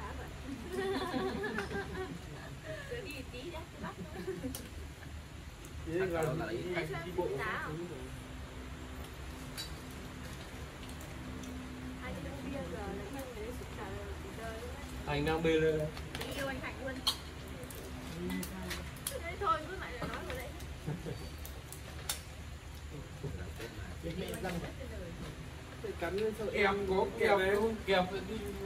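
Men and women talk and laugh together nearby, outdoors.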